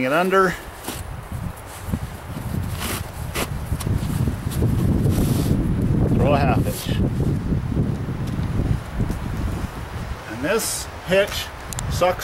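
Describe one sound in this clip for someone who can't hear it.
A rope rubs and rustles against canvas as it is pulled tight.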